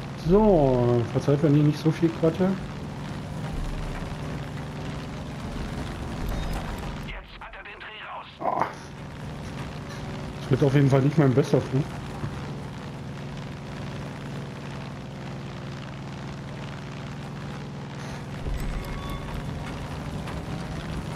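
A small propeller plane's engine drones.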